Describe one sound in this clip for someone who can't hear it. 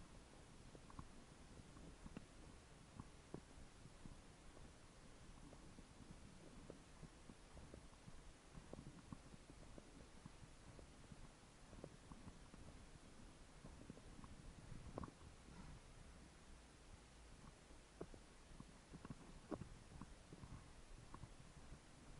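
A bicycle rattles over small bumps now and then.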